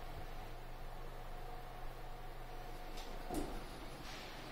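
Elevator doors slide open with a soft thud.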